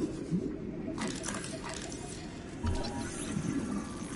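A handheld scanner hums and chirps while scanning.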